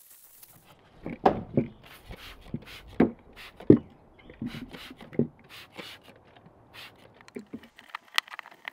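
A metal part knocks and clanks on a wooden board.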